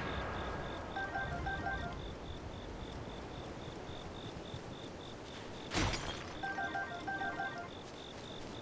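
A short chiming video game jingle plays several times.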